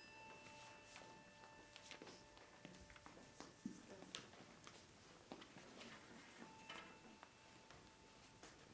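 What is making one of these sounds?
Footsteps tap softly across a hard floor.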